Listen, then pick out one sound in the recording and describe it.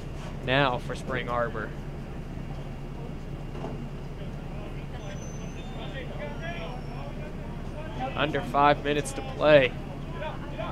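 Young players shout calls to each other outdoors, at a distance.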